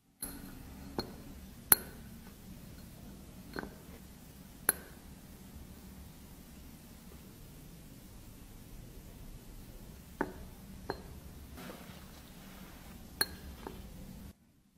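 Lipstick pieces drop and clink into a glass beaker.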